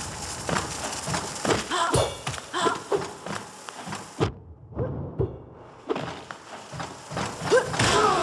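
Sharp slashing hits strike flying creatures.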